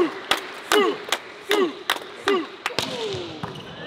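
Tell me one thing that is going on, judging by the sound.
Players clap their hands.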